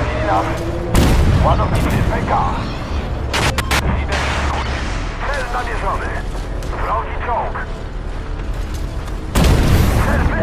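A tank cannon fires with heavy booming blasts.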